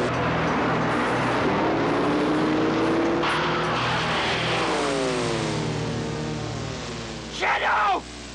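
A car engine roars and revs loudly.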